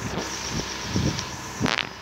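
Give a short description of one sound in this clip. A car engine hums as a car drives.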